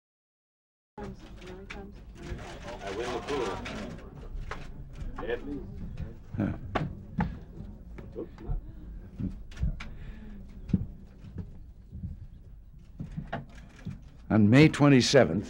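An audience murmurs and shifts in a room.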